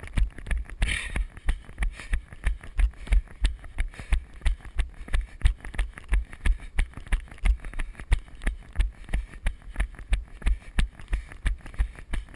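Running footsteps thud steadily and quickly on a dirt trail close by.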